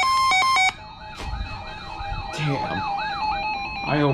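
A weather radio sounds a warbling alert tone.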